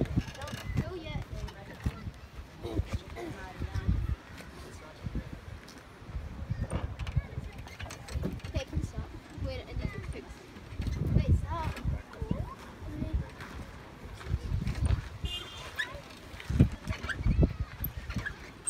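An outdoor elliptical trainer creaks as a child pedals it.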